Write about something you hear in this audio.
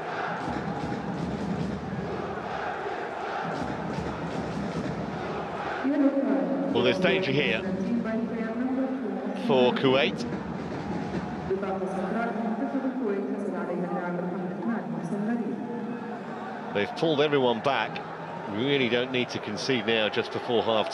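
A stadium crowd murmurs and cheers steadily in a large open arena.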